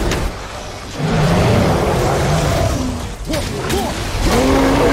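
A huge beast roars deeply and growls.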